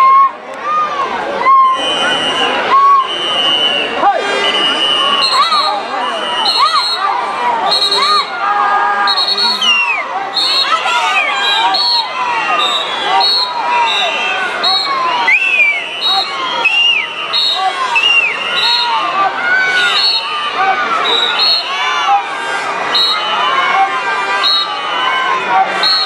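Swimmers splash through the water doing breaststroke.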